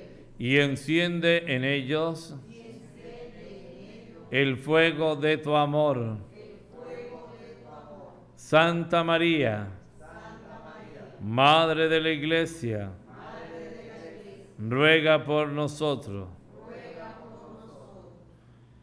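A man chants in phrases through a microphone, echoing in a reverberant room.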